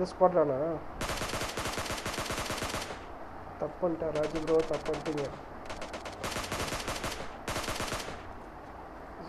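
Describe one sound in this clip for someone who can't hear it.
Rapid rifle shots fire in quick bursts.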